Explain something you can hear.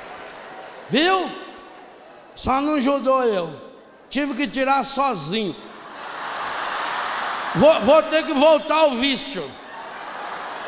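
A man speaks with animation into a microphone over loudspeakers in a large hall.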